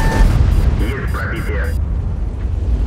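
A shell explodes with a dull blast.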